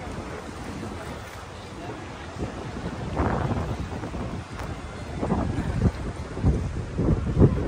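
Small waves lap against a stone embankment.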